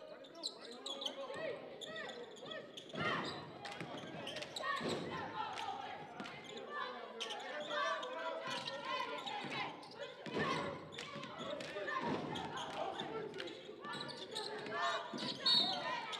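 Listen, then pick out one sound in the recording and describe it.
A basketball bounces on a hardwood floor with hollow thuds.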